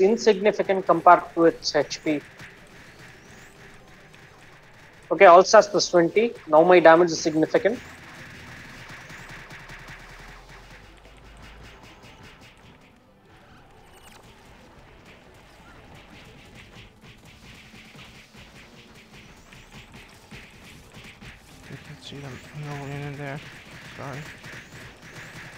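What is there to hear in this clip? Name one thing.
Game spell effects crackle and chime.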